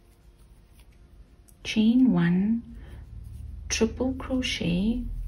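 A crochet hook softly rustles through yarn.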